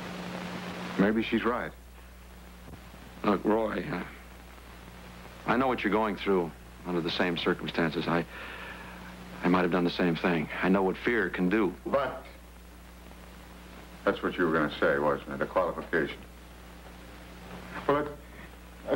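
A man speaks calmly and earnestly, close by.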